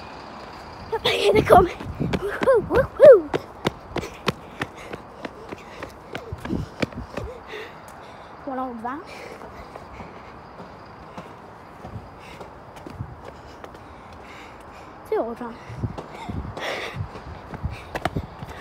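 Footsteps scuff quickly along a paved pavement.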